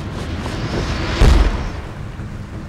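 A heavy body lands on a rooftop with a thud.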